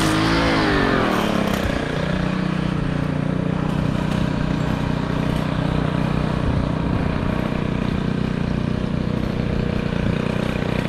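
A string trimmer engine drones loudly close by, its pitch falling then holding steady.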